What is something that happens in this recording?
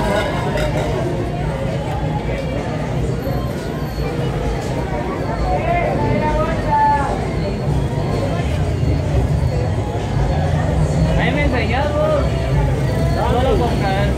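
A man rubs and scrapes paper over a painted sheet.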